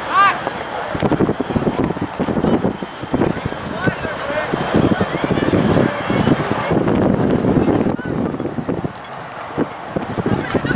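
Young men shout to each other across an open field in the distance.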